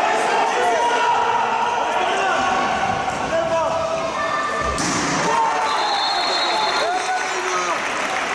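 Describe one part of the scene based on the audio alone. Spectators chatter and call out in a large echoing hall.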